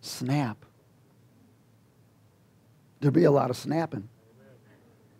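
A man speaks with animation through a microphone, in short bursts.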